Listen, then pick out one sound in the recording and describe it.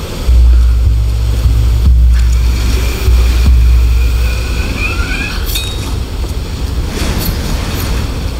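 Waves crash and roar below.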